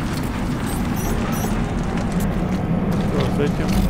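Fires roar and crackle nearby.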